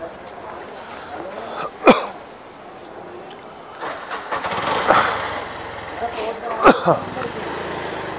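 An auto rickshaw engine rattles close by.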